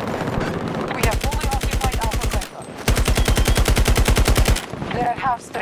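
A rifle fires rapid bursts at close range.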